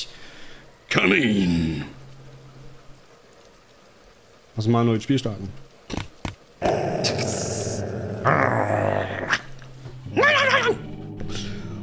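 A man laughs loudly through a microphone.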